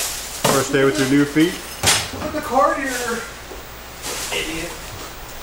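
A plastic bag rustles as a man carries it.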